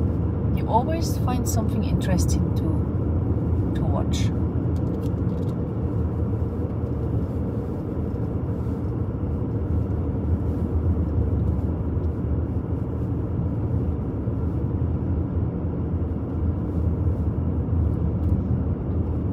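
Tyres roll steadily over asphalt.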